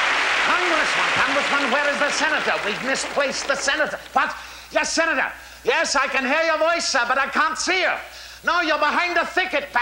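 An elderly man speaks loudly and theatrically on a stage.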